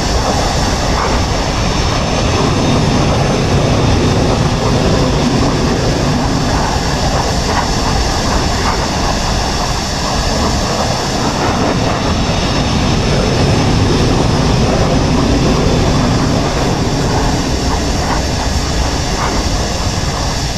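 A jet engine roars loudly and steadily as a fighter plane taxis.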